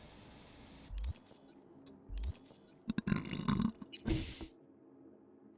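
Game menu sounds click and chime.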